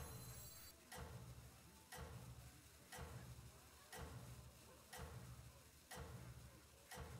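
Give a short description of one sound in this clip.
Game music plays with a steady thumping beat.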